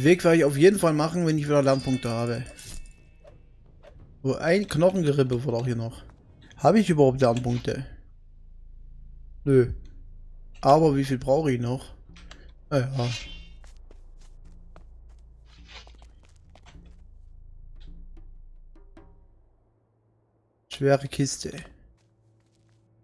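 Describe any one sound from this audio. A man talks calmly and close into a microphone, in bursts with pauses.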